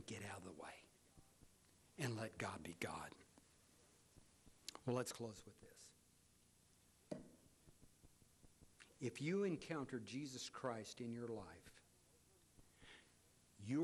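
An older man speaks slowly and calmly into a microphone, with long pauses.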